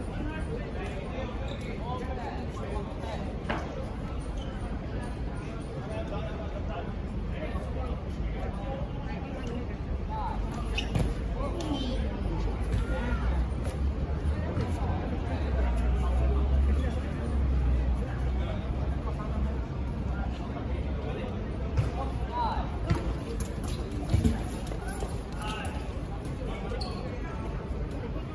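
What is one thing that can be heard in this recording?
Young men call out and chatter across an open court outdoors.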